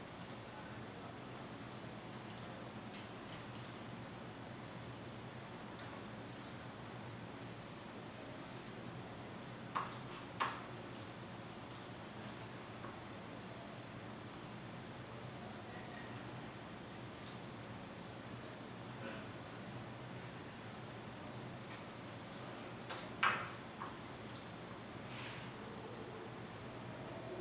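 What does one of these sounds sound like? Fingers tap softly on a laptop keyboard.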